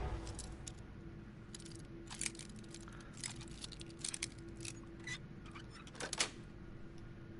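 Metal picks scrape and click inside a lock.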